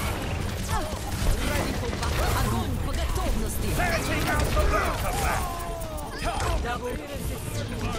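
A game weapon fires rapid energy shots.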